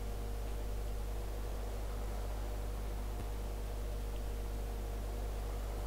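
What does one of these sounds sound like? A snow blower whirs as it clears snow.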